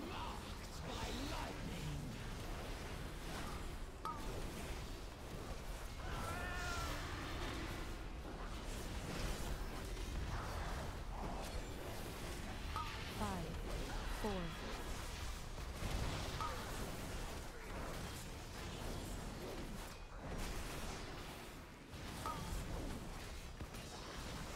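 Spell effects crackle and burst in quick succession during a game battle.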